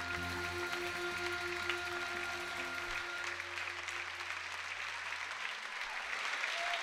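A band plays music in a large hall.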